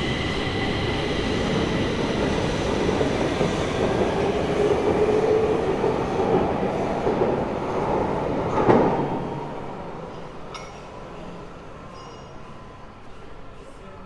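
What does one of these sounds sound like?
A subway train rumbles out of an echoing station and fades into the tunnel.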